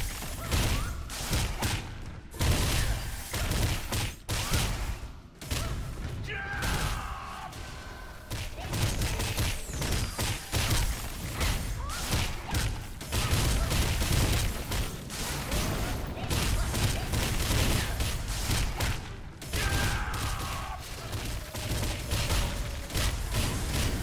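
Weapon blows and spell effects clash and burst in quick succession.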